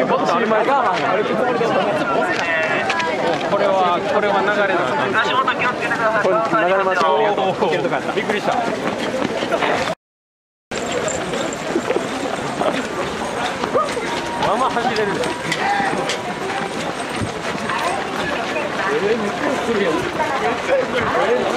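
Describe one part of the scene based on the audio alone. A large crowd chatters loudly outdoors.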